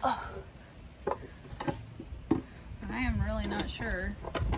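Wooden boards knock and scrape against each other.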